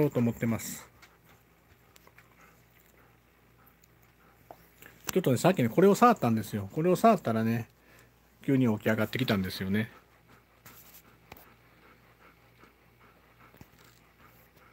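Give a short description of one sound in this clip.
A dog pants softly close by.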